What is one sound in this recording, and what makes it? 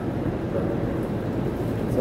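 Footsteps pass on a tiled floor.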